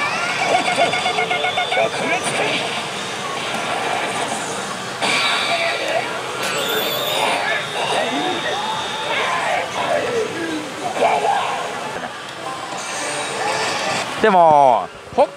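A slot machine plays loud, dramatic music and sound effects.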